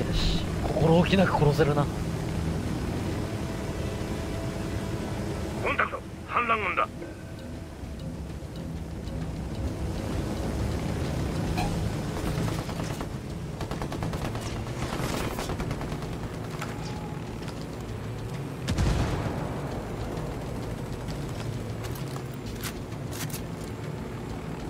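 A helicopter's rotor whirs and thrums steadily.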